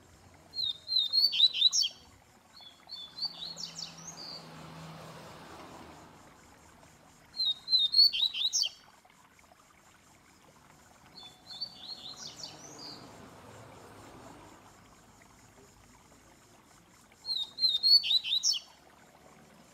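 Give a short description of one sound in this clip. A caged songbird sings loud, quick bursts of chirps and whistles.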